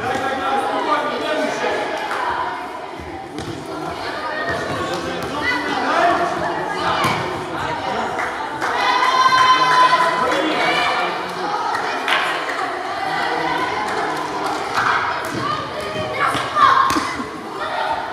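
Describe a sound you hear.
Sneakers squeak sharply on the wooden floor.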